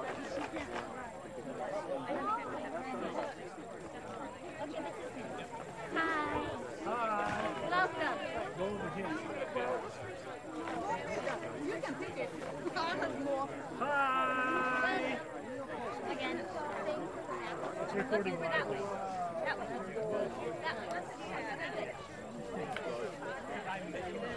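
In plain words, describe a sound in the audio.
A crowd of people chatters outdoors on an open field.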